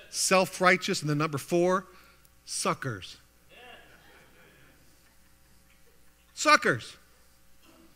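A middle-aged man speaks with emphasis into a microphone in an echoing hall.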